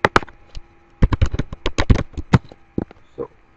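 Keys clatter quickly on a computer keyboard.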